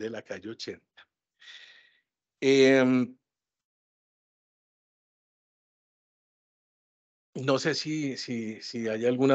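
A man speaks over an online call, in short bursts separated by silences.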